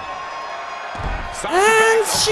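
A heavy body slams onto a wrestling mat with a thud.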